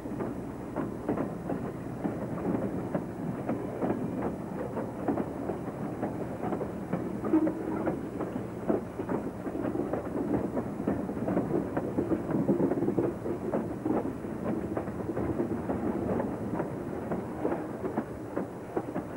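A freight train rolls past close by, its wheels rumbling and clanking over the rail joints.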